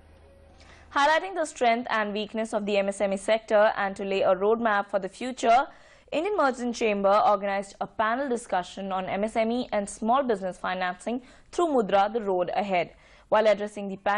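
A young woman reads out the news calmly and clearly through a microphone.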